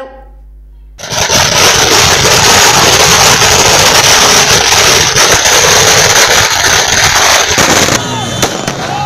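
Fireworks crackle and bang loudly.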